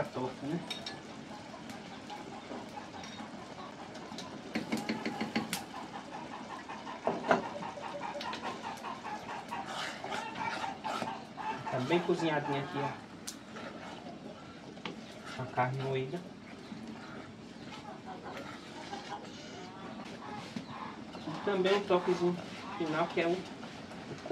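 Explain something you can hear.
A spoon scrapes and clinks against a pot.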